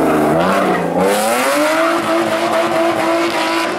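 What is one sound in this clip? Tyres squeal on asphalt as a rally car slides sideways.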